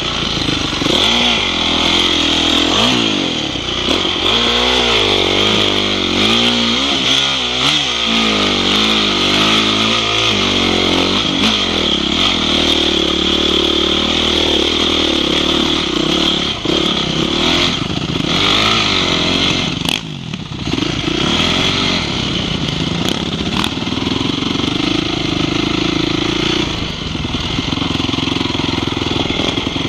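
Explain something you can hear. A dirt bike engine revs up and down.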